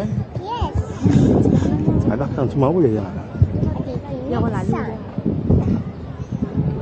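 A crowd of children chatters and shouts in the distance outdoors.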